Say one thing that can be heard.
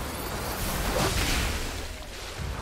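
Fiery blasts burst and crackle.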